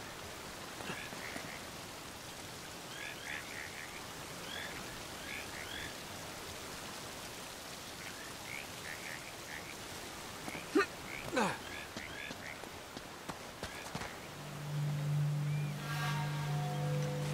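Water gushes and splashes steadily.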